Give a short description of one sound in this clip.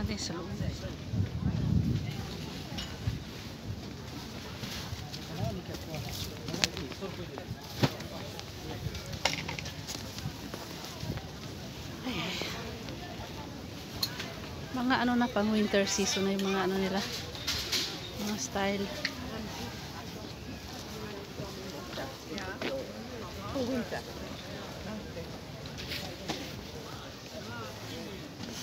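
A crowd of men and women chatter and call out nearby, outdoors.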